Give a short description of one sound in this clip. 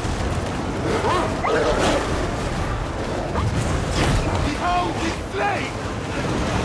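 Creatures shriek and screech in bursts.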